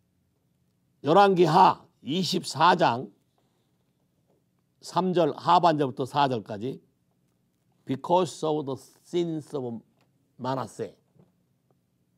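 An elderly man reads aloud calmly, close to a microphone.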